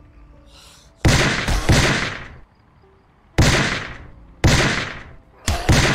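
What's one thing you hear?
Loud heavy blows strike again and again, each ringing out and fading.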